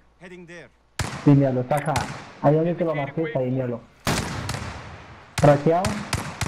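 A sniper rifle fires sharp, loud shots.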